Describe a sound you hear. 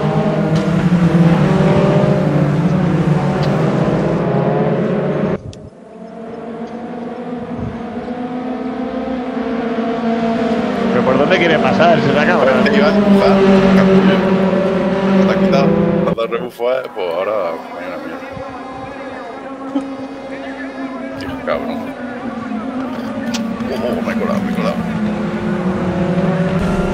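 Racing car engines roar and whine as the cars speed around a track.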